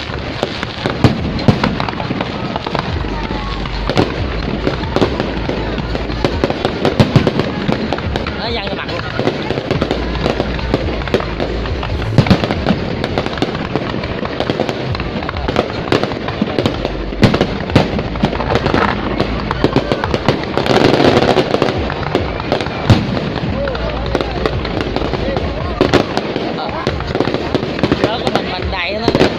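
Fireworks boom loudly overhead.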